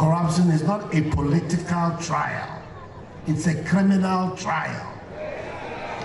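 A man speaks loudly and forcefully through a microphone and loudspeakers, outdoors.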